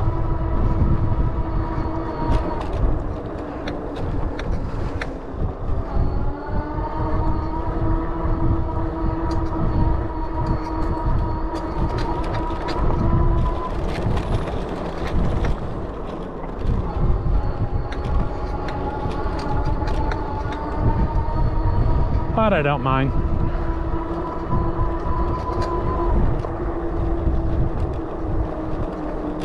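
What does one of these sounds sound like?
Wind rumbles past the rider.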